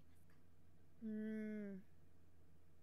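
A young woman hums briefly close to a microphone.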